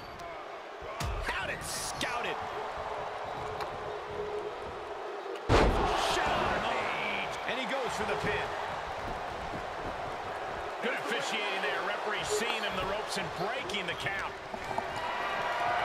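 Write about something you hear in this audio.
Sharp smacks of strikes land between wrestlers.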